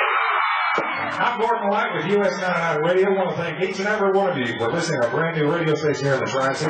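A man speaks loudly into a microphone over loudspeakers.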